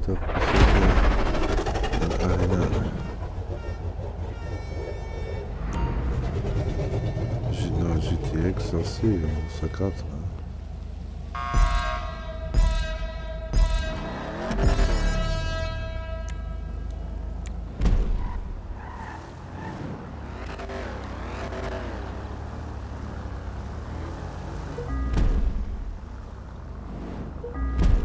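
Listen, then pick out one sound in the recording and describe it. A car engine rumbles and revs.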